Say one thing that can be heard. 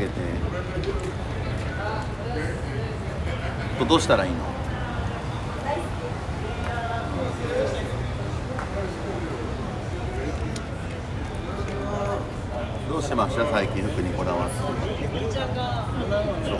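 A young man talks casually and close to a microphone.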